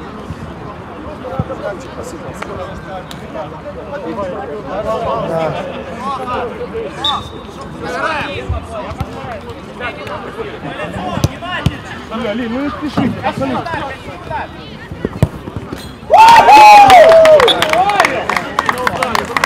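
Young men shout and call to each other across an outdoor pitch.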